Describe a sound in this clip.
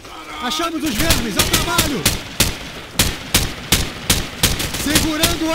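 A rifle fires in quick single shots.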